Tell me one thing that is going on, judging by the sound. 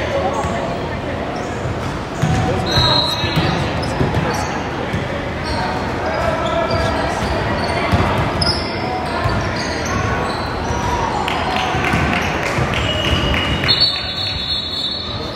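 Sneakers squeak on a hard court in an echoing gym.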